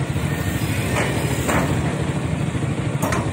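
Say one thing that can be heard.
Metal clanks sharply as an excavator works.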